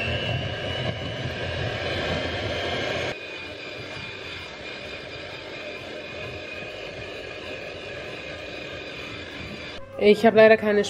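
An electric hand mixer whirs steadily, beating in a bowl.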